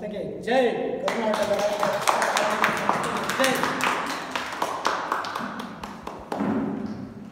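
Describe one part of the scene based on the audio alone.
A group of people claps their hands in applause.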